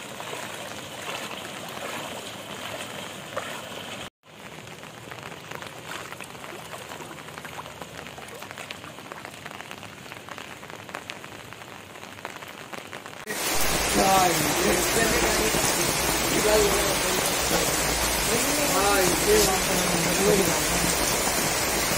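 Heavy rain pours steadily onto flooded streets.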